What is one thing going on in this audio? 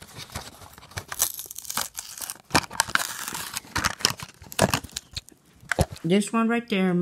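Plastic and cardboard packaging crackle and rustle in hands.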